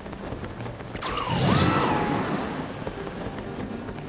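A shimmering magical whoosh swells and quickly fades.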